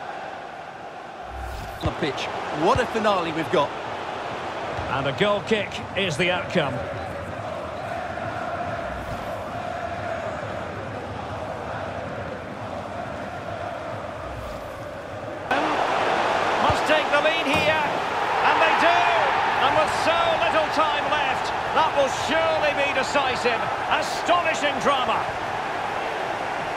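A large stadium crowd roars and cheers.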